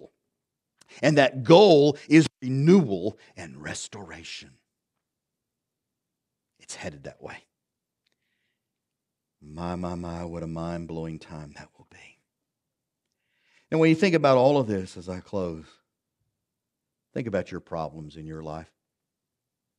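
A middle-aged man speaks with animation through a microphone, pausing now and then.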